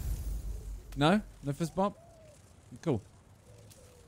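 A man speaks briefly and excitedly into a microphone.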